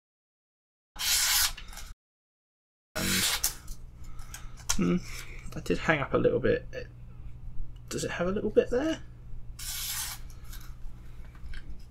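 Paper rustles and crinkles in the hands.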